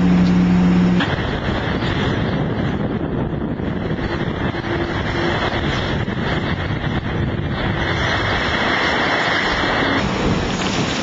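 Waves crash and splash against a boat's hull.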